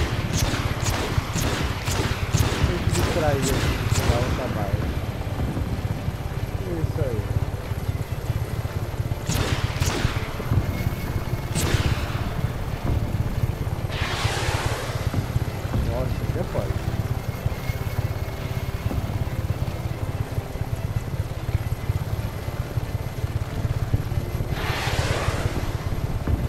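A helicopter's rotor thumps steadily and loudly.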